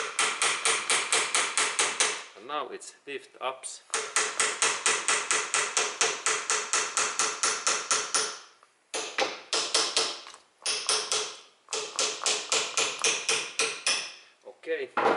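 A hammer taps rapidly and repeatedly on a metal joint, ringing sharply.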